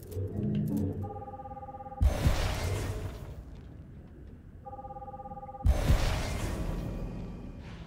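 A steady electronic tone hums, then ends in a loud whoosh.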